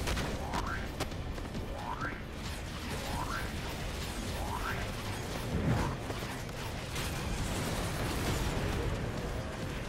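Electric energy crackles and hums loudly.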